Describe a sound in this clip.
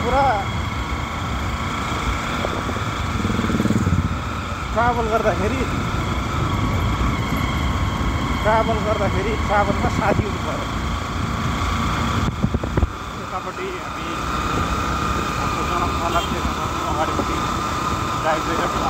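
Wind buffets the microphone on a moving motorcycle.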